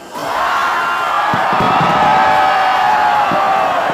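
Fireworks burst overhead.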